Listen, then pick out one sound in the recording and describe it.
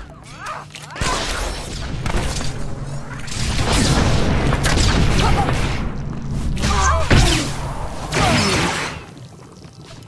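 Blasters fire and energy weapons crackle in a fight.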